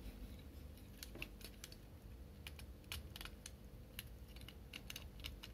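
Small plastic parts click and snap as fingers twist a toy's joints.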